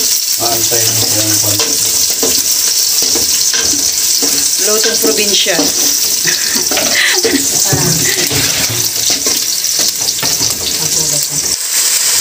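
A spoon stirs and scrapes inside a metal pot.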